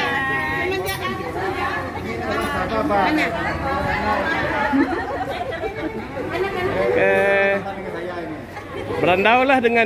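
Several women talk and chatter close by.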